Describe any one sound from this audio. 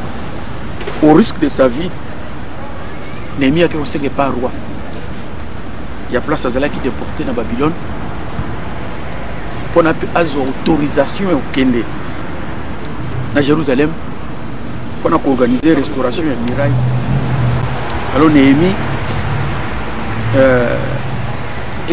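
A middle-aged man speaks calmly in short phrases, close to a microphone.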